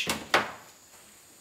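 Tools click and knock on metal close by.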